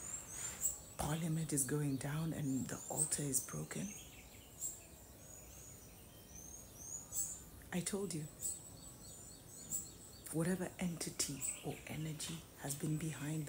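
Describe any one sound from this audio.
A woman speaks calmly and closely to the listener.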